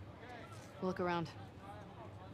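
A woman speaks briefly nearby.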